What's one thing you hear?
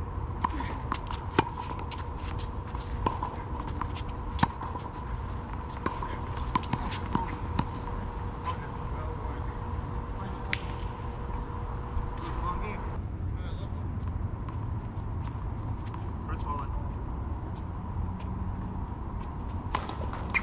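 Tennis balls are struck with rackets with sharp pops.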